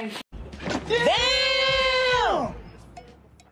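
A young man exclaims loudly in a drawn-out cry.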